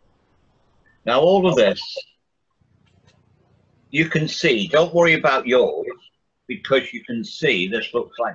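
A man talks calmly, heard through an online call.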